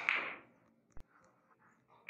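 A cue strikes a billiard ball with a sharp click.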